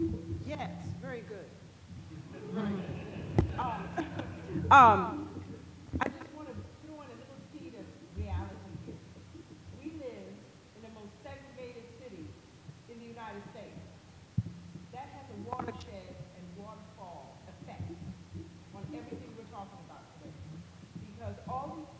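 An elderly woman speaks with animation into a microphone.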